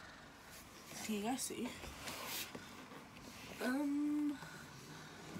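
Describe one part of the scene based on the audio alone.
A young woman speaks briefly and softly close by.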